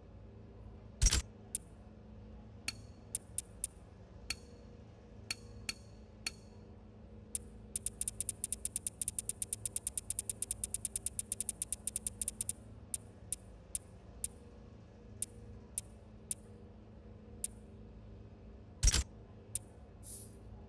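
Short electronic menu clicks tick, sometimes in quick runs.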